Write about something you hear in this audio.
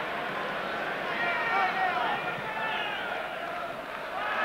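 A stadium crowd chants and sings.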